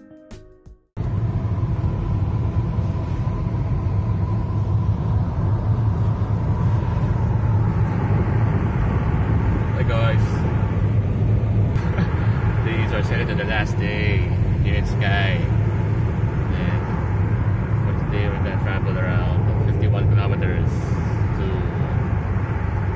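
A car engine hums steadily with road noise inside the car.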